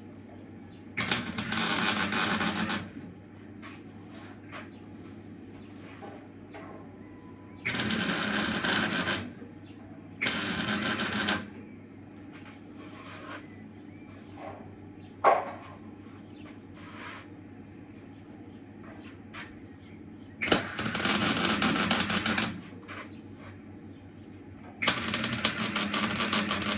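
An arc welder crackles and buzzes in short bursts.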